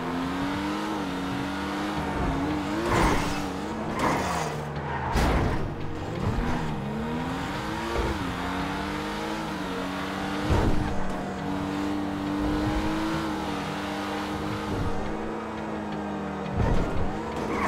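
A car engine hums steadily, its pitch rising and falling as it revs.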